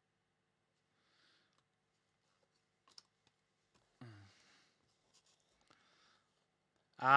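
Card sleeves rustle and slide softly.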